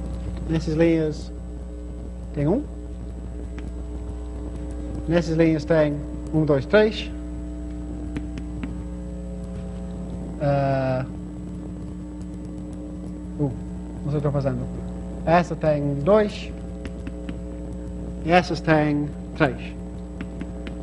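A young man speaks calmly, in short phrases with pauses.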